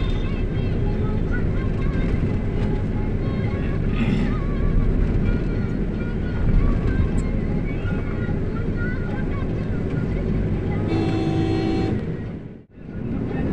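A motorbike engine rumbles steadily.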